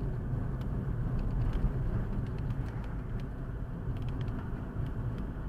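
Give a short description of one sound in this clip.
A car's engine hums steadily from inside.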